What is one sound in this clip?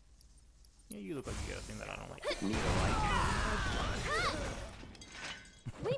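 A magic blast bursts with a loud crackling roar.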